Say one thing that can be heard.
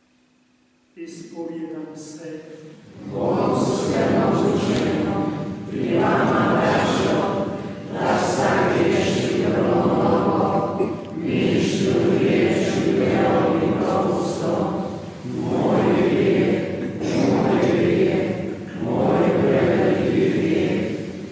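An elderly man speaks steadily into a microphone in an echoing hall.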